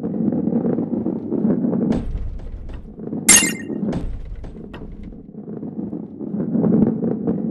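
A ball rolls along a wooden track.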